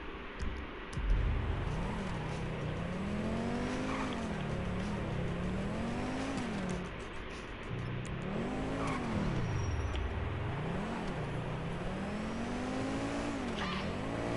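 A car engine revs up and down repeatedly as the car speeds along.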